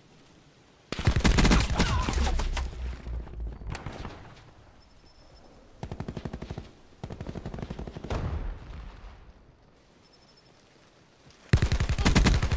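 A rifle fires in rapid bursts of loud automatic shots.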